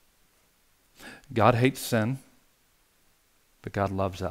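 A middle-aged man speaks calmly and with expression, close to a microphone.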